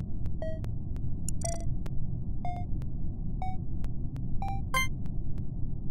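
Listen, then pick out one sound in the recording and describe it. Short electronic chimes ring out one after another.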